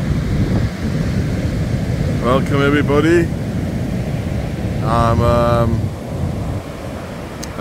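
Waves crash and wash up onto the shore close by.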